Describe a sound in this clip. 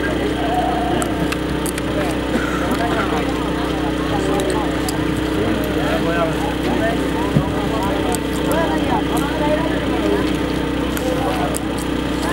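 A large crowd of men shouts and calls out in the distance, outdoors.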